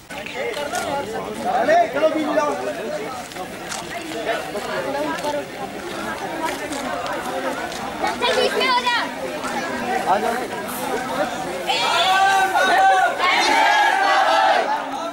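A crowd of young women and girls chatters and calls out outdoors.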